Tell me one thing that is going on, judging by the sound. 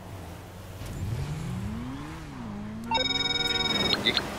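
A motorcycle engine starts and revs up.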